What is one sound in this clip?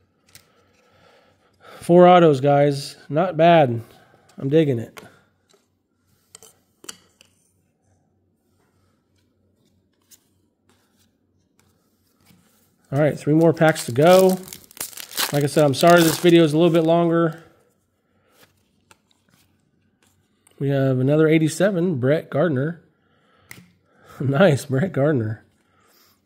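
Trading cards slide and tap against each other.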